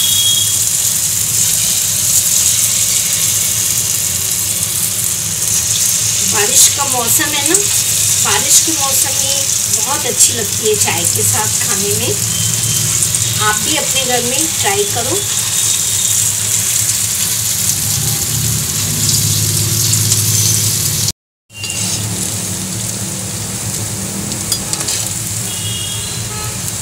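Hot oil sizzles and crackles steadily.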